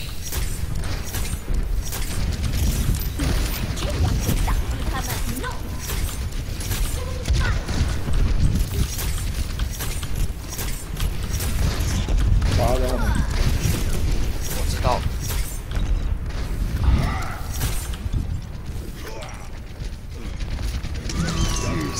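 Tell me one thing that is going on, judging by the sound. Explosions thump and rumble.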